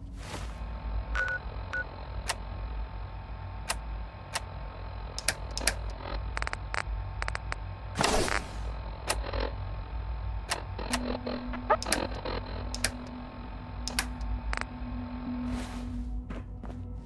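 Interface clicks and beeps tick sharply as menus change.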